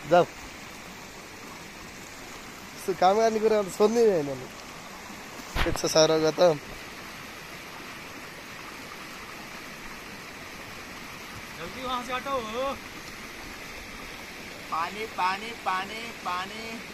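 A shallow stream trickles and splashes over rocks.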